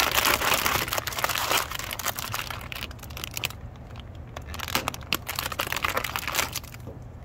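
Thin plastic film crinkles and rustles under fingers.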